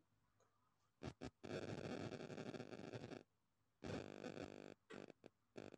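A woman breathes out loudly and slowly.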